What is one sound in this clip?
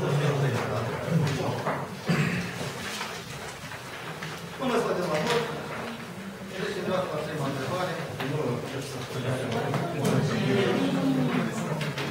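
A middle-aged man speaks calmly.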